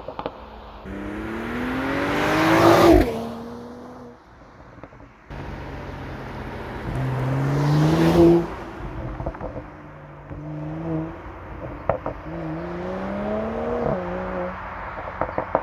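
A sports car engine roars loudly as a car accelerates past.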